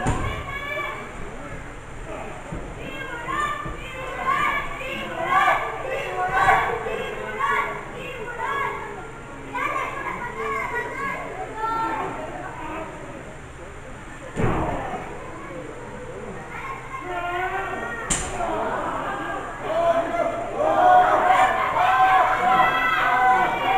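A crowd of spectators shouts and chants loudly nearby.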